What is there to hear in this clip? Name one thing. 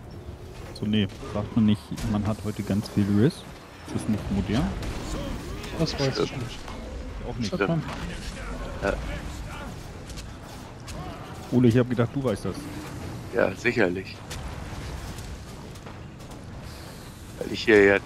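Magic spells burst and crackle during a fight.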